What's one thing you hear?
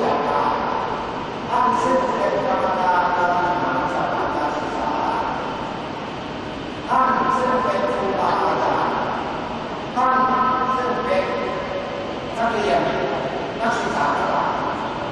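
A man chants into a microphone, and his voice echoes through loudspeakers in a large hall.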